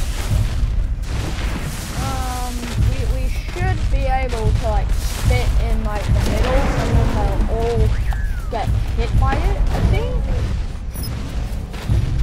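Heavy footsteps of a large creature thud on the ground.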